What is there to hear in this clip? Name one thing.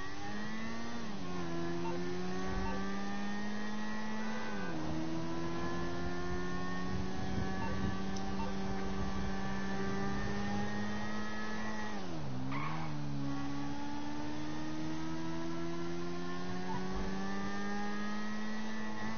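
A motorcycle engine hums steadily, dropping in pitch as the rider shifts gears.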